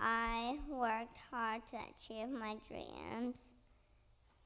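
A young child speaks into a microphone in an echoing hall.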